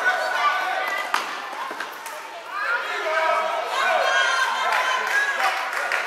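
Children shout and call out in a large echoing hall.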